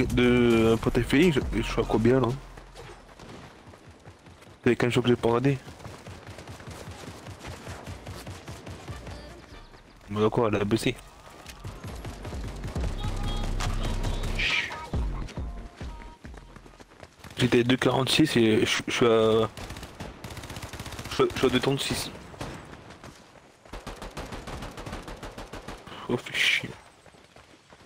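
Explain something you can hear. A man talks calmly into a close microphone in short bursts.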